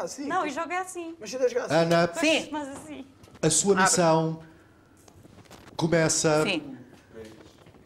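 Young men and women talk with animation, close by.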